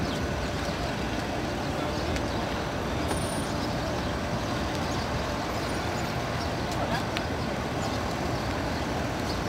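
City traffic with buses rumbles in the distance.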